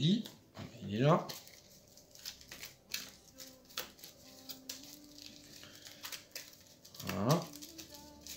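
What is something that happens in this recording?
Playing cards rustle and slap as they are handled and shuffled.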